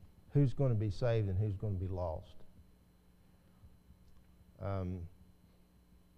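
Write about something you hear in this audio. A man speaks calmly and slowly through a microphone, with long pauses.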